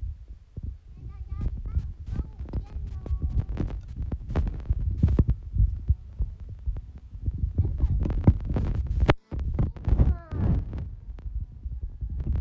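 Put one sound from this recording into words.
A young woman talks playfully and close to the microphone.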